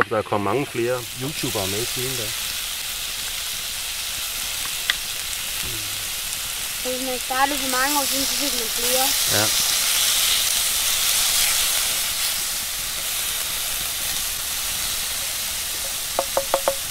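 Meat sizzles loudly on a hot pan.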